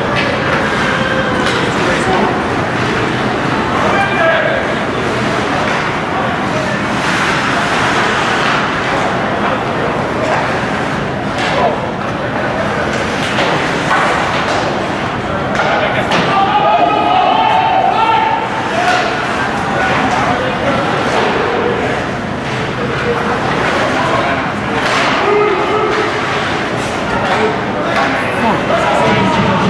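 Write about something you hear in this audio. Skates scrape and carve across the ice in a large echoing arena.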